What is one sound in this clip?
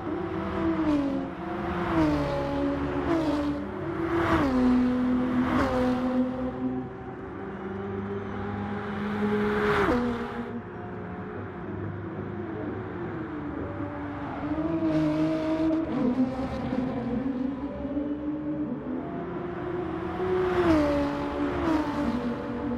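Racing cars whoosh past close by.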